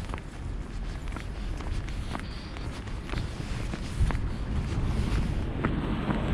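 Footsteps tap steadily on a paved path.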